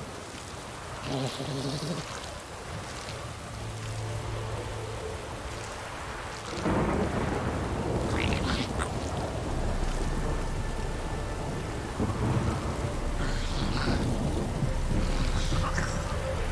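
Footsteps tread on grass and dirt at a walking pace.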